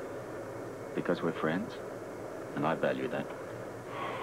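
A man answers in a low, relaxed voice nearby.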